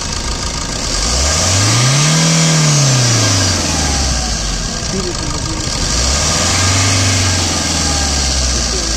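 A car engine revs up and settles back down twice.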